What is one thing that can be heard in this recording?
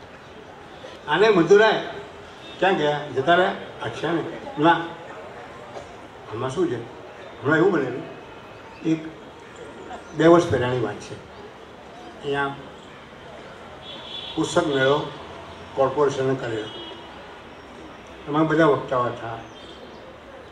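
An elderly man speaks slowly into a microphone, with long pauses, heard through a loudspeaker.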